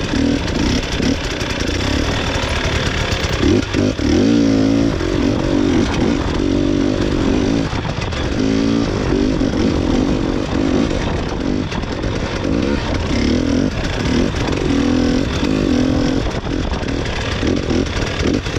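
A snowmobile engine roars and revs loudly up close.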